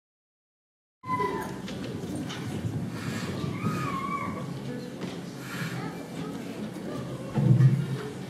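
A jazz band plays live in a large hall.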